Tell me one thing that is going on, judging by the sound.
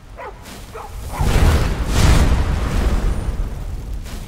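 A magic spell blasts with a loud rushing burst.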